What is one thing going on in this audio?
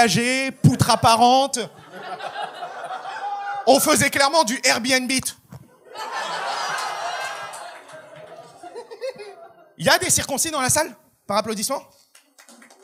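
A man speaks with animation into a microphone in front of an audience.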